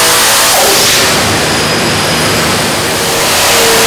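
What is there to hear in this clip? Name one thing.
A supercharged engine drops off the throttle and then revs up again.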